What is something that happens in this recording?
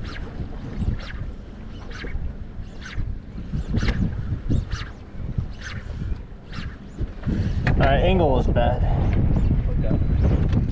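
Wind gusts hard across the microphone outdoors.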